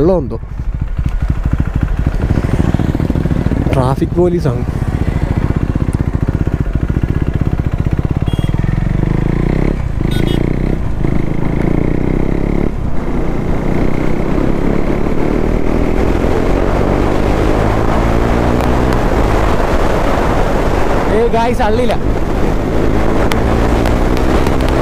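A motorcycle engine drones steadily up close as the bike rides along.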